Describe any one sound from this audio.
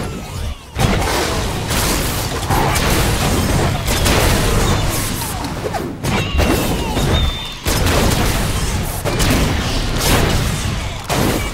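Explosions boom and roar again and again.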